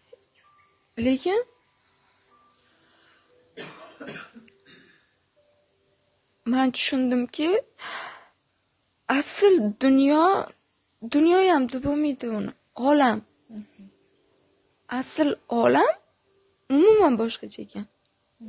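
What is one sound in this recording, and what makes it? A young woman speaks calmly and close to a microphone, with pauses.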